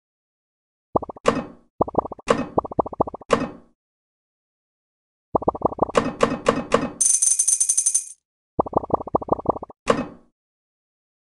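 Bright game chimes pop quickly as balls are collected.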